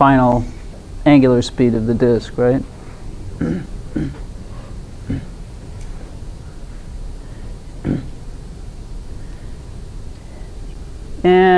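An elderly woman speaks nearby, pausing between phrases.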